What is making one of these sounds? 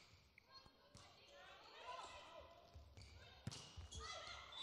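Players shout on the court, echoing in a large hall.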